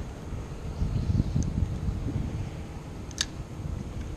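A fishing reel clicks and whirs as its line is wound in.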